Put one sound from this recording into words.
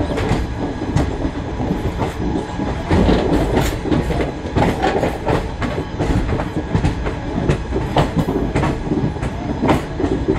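Passenger coaches roll past close by.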